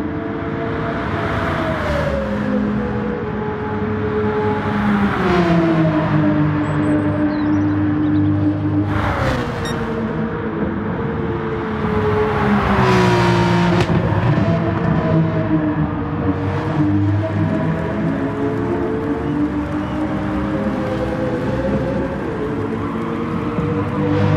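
A race car engine roars loudly, its pitch rising and falling through gear changes.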